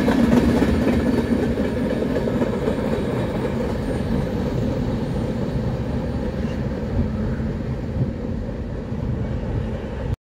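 A crossing bell rings steadily.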